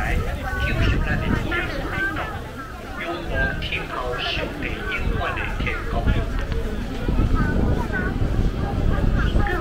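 A crowd of men and women chatter nearby.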